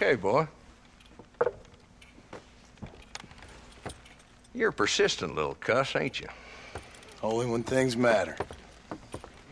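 A younger man answers in a low, calm voice.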